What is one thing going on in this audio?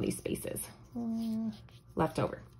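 A felt-tip marker squeaks across paper.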